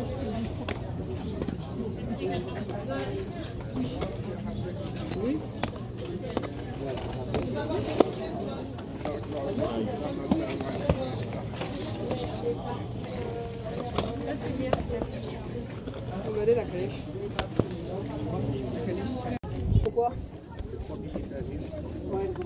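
Plastic game cases clack and rattle as they are picked up and put down.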